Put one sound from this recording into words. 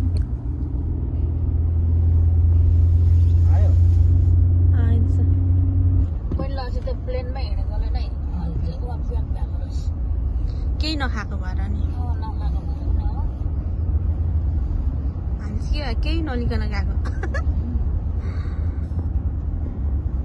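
A car engine hums steadily with road rumble from the tyres.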